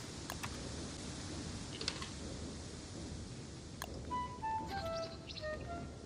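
Short soft clicks and beeps of a game menu sound.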